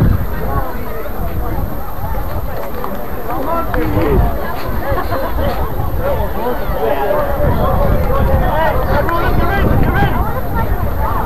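A crowd of young spectators chatters and calls out nearby, outdoors.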